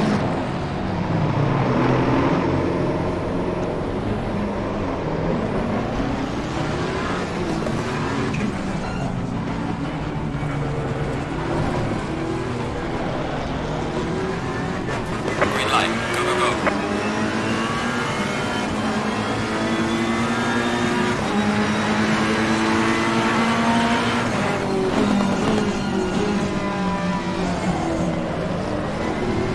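A racing car engine roars loudly, rising and falling in pitch as the gears shift.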